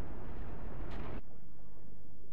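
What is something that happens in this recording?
A small body splashes into water.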